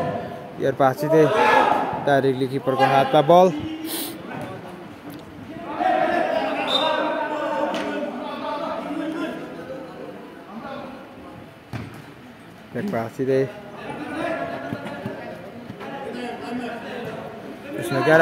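A football thuds off a player's foot.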